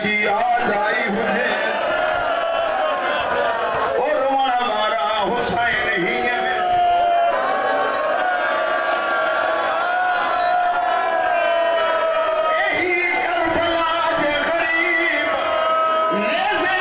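A man chants a lament loudly in an echoing hall.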